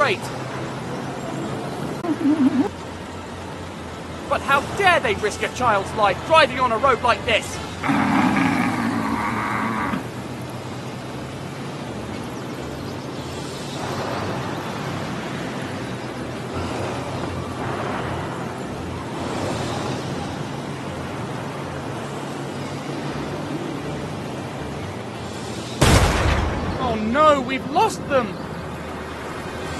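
A small car engine hums steadily while driving fast.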